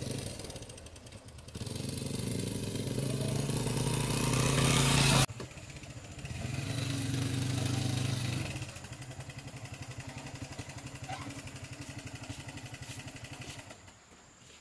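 A motorbike engine revs and idles nearby.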